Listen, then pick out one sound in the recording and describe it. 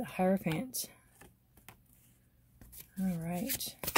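A card taps down onto a wooden surface.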